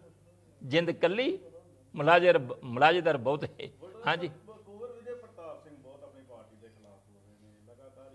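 An elderly man speaks with animation into microphones, close by.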